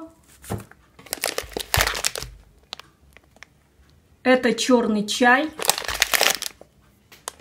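A plastic snack bag crinkles as it is handled.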